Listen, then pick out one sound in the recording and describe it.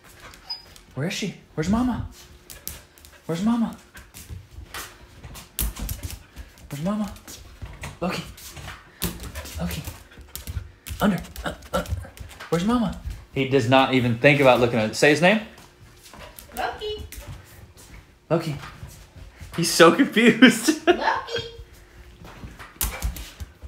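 A dog barks and yelps excitedly.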